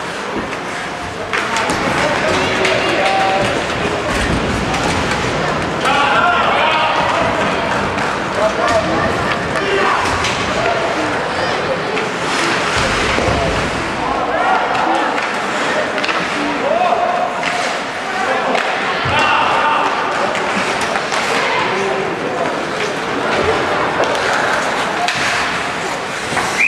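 Skates scrape and hiss on the ice.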